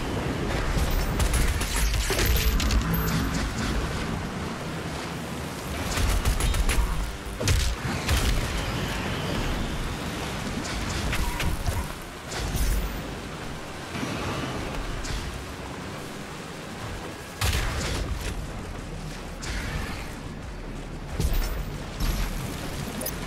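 A heavy gun fires in loud bursts.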